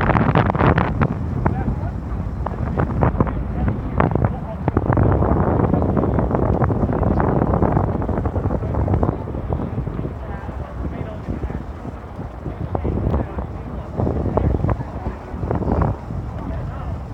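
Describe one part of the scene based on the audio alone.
Wind gusts outdoors, buffeting loudly.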